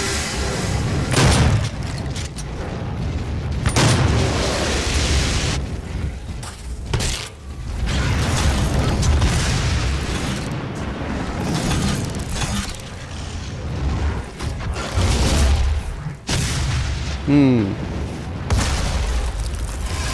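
Guns fire in loud bursts.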